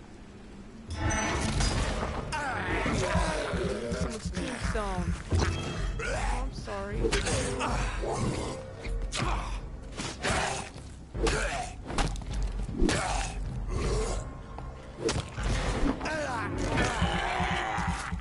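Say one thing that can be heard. Blades slash and strike in a fight, with sharp hits.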